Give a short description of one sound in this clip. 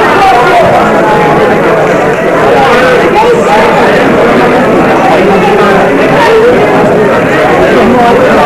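A crowd of people murmurs and chatters throughout a large hall.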